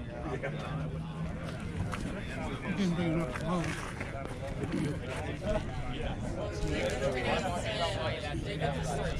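Several men talk nearby in a chatty outdoor crowd.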